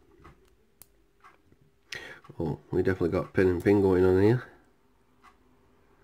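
Metal tweezers click softly against a small lock.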